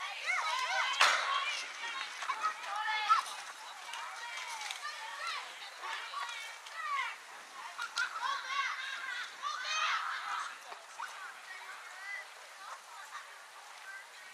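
Young girls shout and cheer in the open air.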